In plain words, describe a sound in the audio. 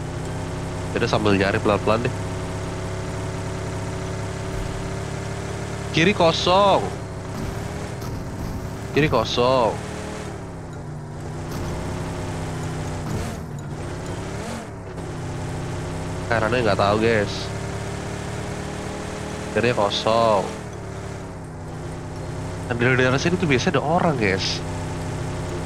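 A young man talks in short bursts with animation, close to a microphone.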